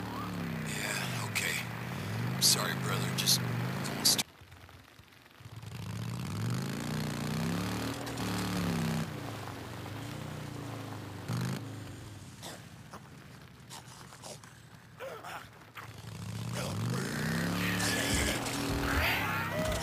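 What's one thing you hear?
A motorcycle engine rumbles and revs as it rides over rough ground.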